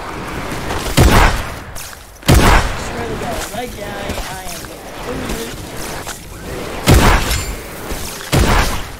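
Loud gunshots and blasts ring out in short bursts.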